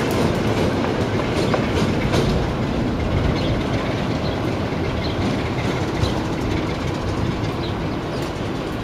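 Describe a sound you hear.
A diesel locomotive rumbles as it rolls slowly into a station.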